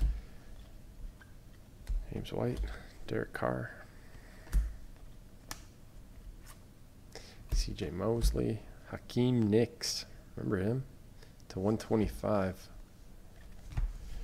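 Trading cards slide and rustle against each other in hands.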